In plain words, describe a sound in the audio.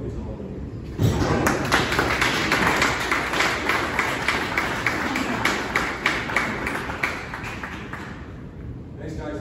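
A small crowd claps and cheers nearby in an echoing room.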